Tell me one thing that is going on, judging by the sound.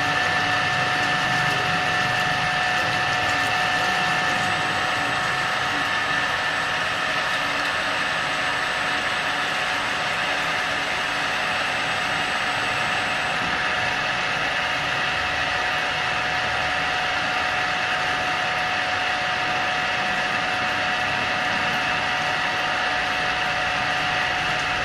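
A drilling machine whines steadily as its spindle spins.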